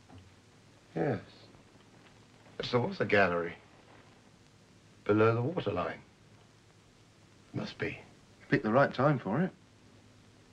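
An older man answers in a calm voice.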